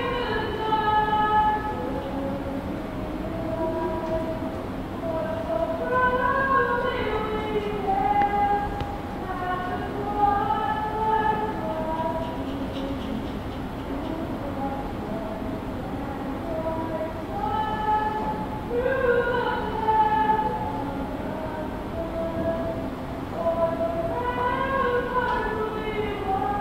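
A woman sings a slow anthem through a loudspeaker in a large echoing hall.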